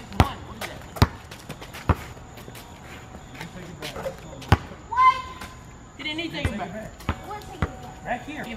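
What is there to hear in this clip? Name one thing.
A basketball bounces sharply on hard pavement.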